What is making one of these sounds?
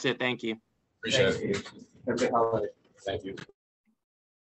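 A young man speaks casually into a microphone.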